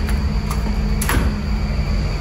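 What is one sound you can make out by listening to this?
A metal door latch clicks open.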